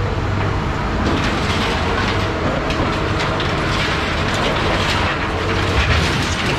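Scrap metal clanks and scrapes as a grapple drops it.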